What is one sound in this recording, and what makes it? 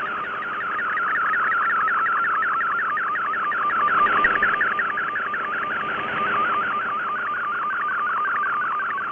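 Static hisses steadily from a shortwave radio.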